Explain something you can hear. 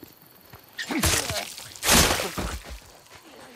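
Heavy blows thud during a close scuffle.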